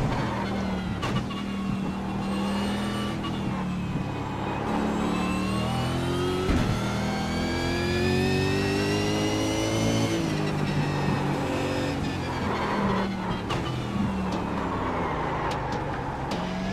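A racing car engine roars, its pitch rising and falling as it shifts gears and revs through corners.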